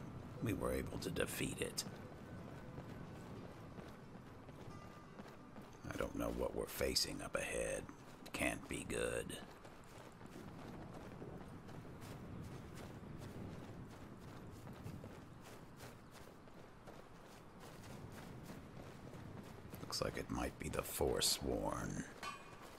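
Footsteps crunch quickly on gravel and grass.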